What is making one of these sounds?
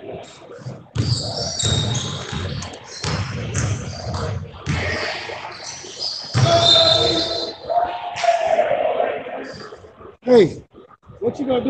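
Sneakers squeak on a hard court floor in a large echoing gym.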